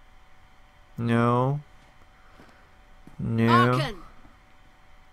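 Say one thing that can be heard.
A young man makes short vocal sounds close to a microphone.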